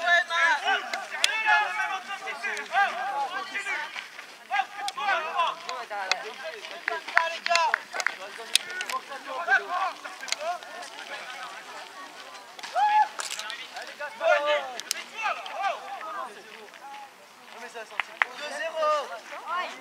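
Adults talk and call out nearby outdoors.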